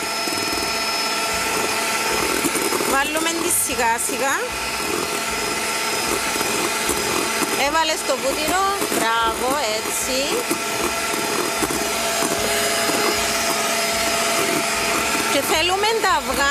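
An electric hand mixer whirs steadily.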